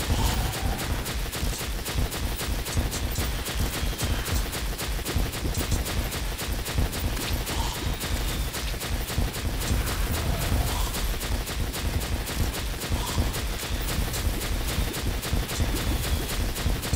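Projectiles fire in fast repeating bursts.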